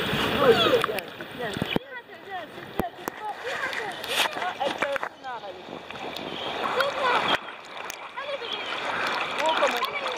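Water splashes and laps as a dog swims.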